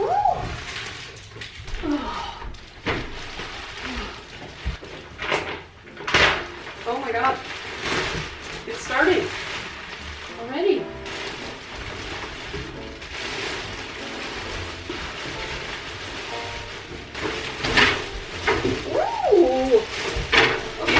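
Plastic wrapping crinkles and rustles as a mattress is handled.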